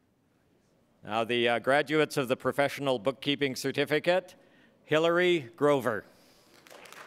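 A man announces through a microphone and loudspeaker in a large echoing hall.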